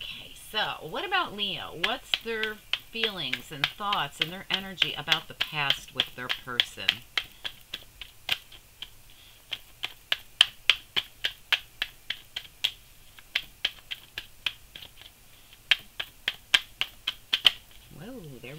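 Playing cards riffle and snap rapidly as they are shuffled.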